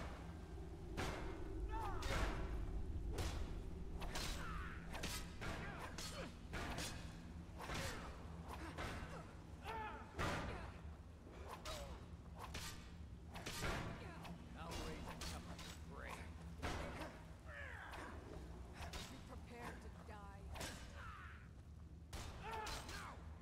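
Swords clang and strike repeatedly in a fight.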